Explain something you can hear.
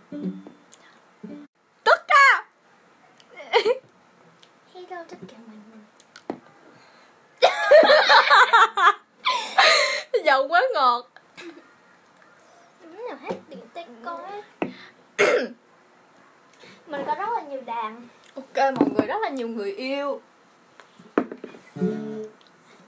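Young girls talk close by, casually.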